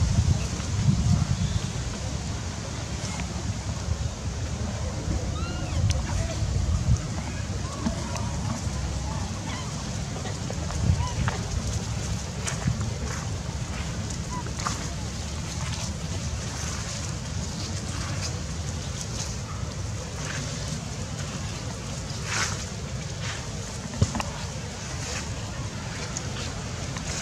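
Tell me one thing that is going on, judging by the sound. A baby monkey squeaks softly.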